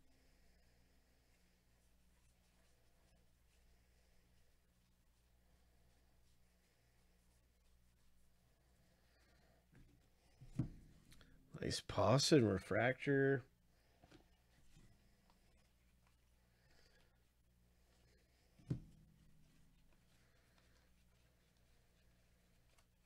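Trading cards rustle and slide softly as they are flipped through by hand.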